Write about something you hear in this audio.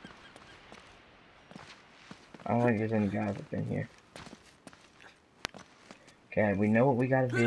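Footsteps scuff softly on stone.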